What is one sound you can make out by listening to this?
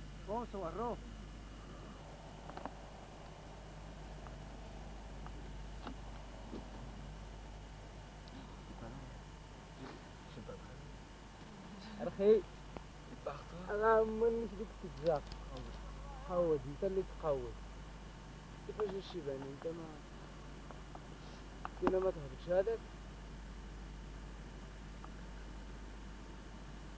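A car engine hums at a distance.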